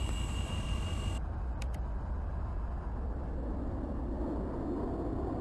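A jet engine rumbles steadily as a plane taxis.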